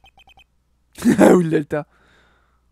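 A young man speaks briefly with animation close to a microphone.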